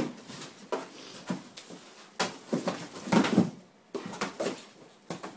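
A dog's paws patter and scrape on a rug.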